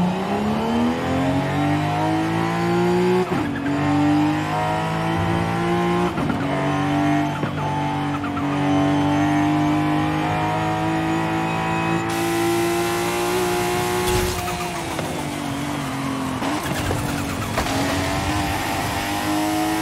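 A car engine revs high and shifts gears as the car speeds along.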